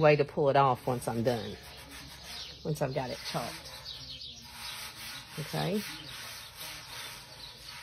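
Hands rub and smooth a plastic sticker.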